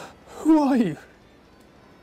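A man groans loudly nearby.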